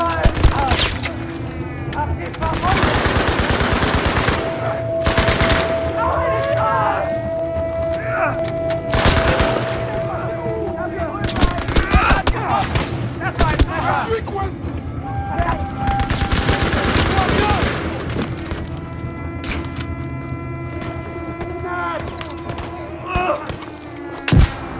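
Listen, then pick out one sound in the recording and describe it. A submachine gun fires rapid bursts at close range.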